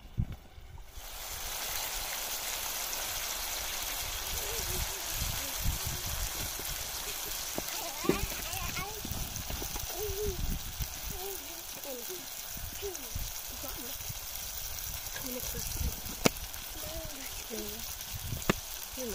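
Tomato slices sizzle and hiss in a hot frying pan.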